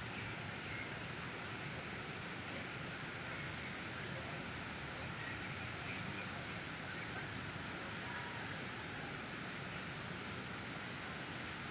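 Footsteps crunch on leaves and twigs at a distance.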